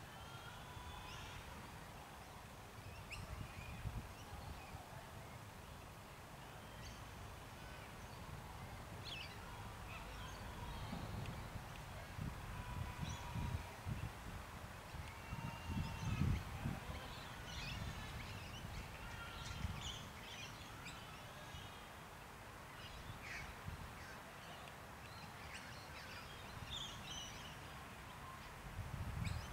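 Wind gusts across the microphone outdoors.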